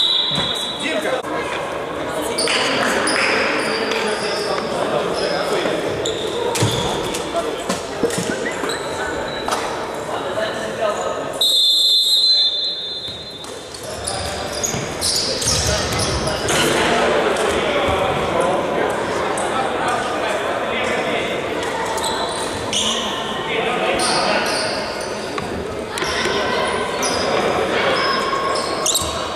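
Men shout to each other across an echoing hall.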